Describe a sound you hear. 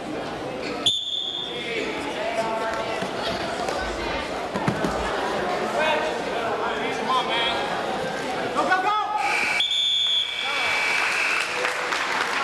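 Shoes squeak on a mat.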